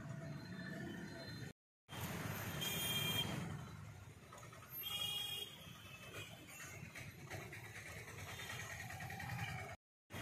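A motor rickshaw putters past.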